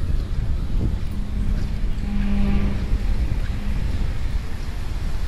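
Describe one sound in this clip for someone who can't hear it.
A motorcycle engine hums nearby.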